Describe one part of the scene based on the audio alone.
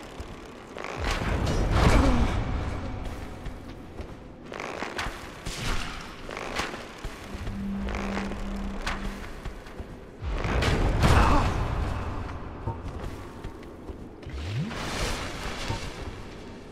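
A burst of fire roars and whooshes.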